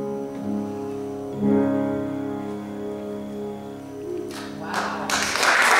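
A small choir sings together in an echoing hall.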